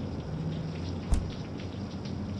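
A refrigerator door thuds shut.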